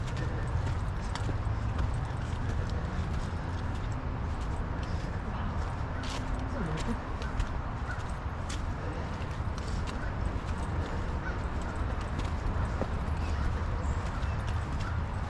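Dry leaves crunch and crackle under the tyres.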